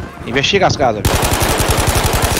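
A rifle fires rapidly, shot after shot.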